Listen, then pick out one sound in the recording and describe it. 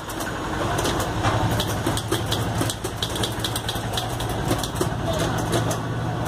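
Typewriter keys clack rapidly and steadily.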